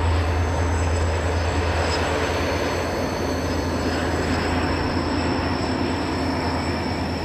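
A diesel train engine drones steadily in the distance.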